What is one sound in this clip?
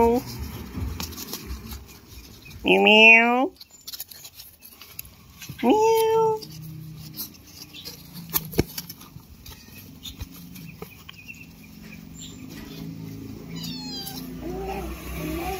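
Puppies chew and lap food with soft, wet smacking.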